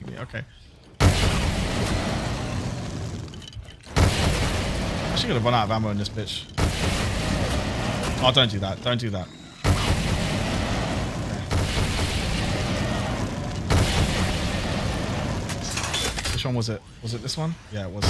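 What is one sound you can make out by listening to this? A fire weapon roars and crackles in bursts.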